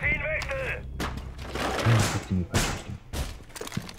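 Metal clanks and rattles as a barricade is fixed in place.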